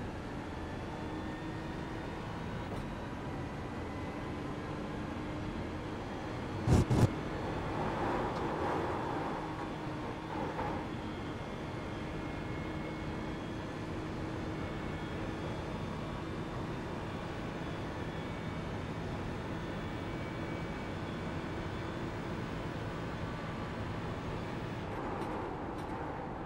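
A racing car engine drones steadily, shifting pitch as the car speeds up and slows.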